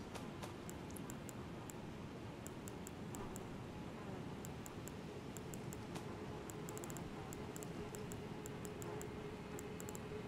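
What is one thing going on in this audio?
Soft menu ticks click in quick succession as items are scrolled through.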